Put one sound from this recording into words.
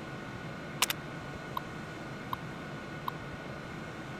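A computer terminal beeps a few times as text prints.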